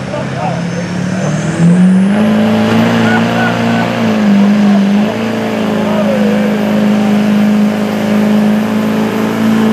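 A truck's diesel engine roars loudly, with its pitch climbing as it pulls away.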